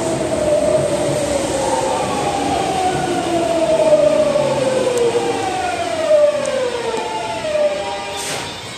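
An electric commuter train hums beside a platform.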